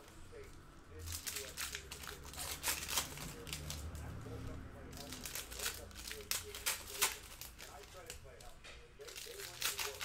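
Foil card packs crinkle and rustle.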